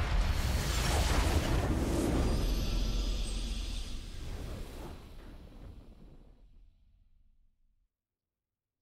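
A triumphant game victory fanfare rings out and slowly fades away.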